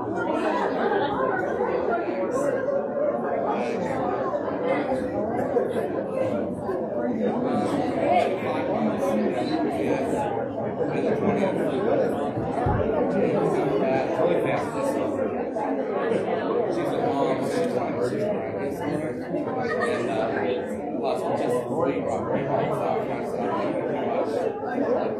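A woman speaks through a microphone in an echoing hall.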